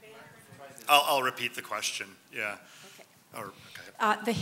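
A man in the audience speaks into a handheld microphone.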